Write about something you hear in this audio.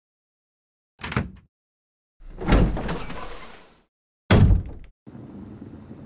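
A heavy wooden door creaks open and thuds shut.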